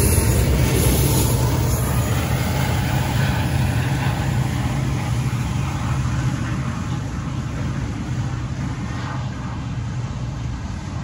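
Diesel locomotive engines drone loudly as they pass.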